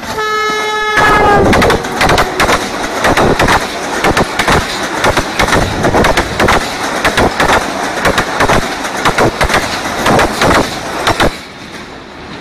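Train wheels clatter rapidly over rail joints as a long train rushes past close by.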